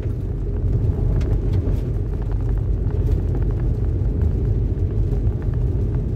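Raindrops tap on a windscreen.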